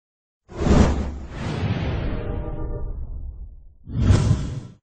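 A deep whooshing swoosh rises and then slowly fades away.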